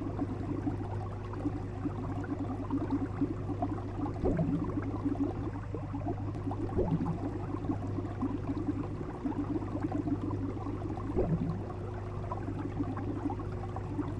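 Water in an aquarium bubbles and gurgles steadily.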